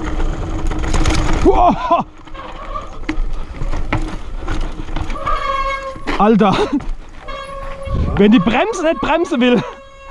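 A bicycle rattles and clatters over bumps and roots.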